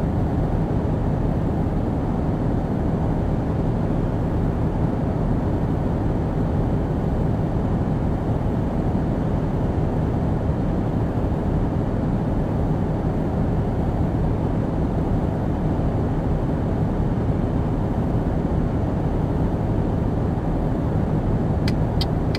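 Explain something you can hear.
Tyres roll along a highway with a steady low roar.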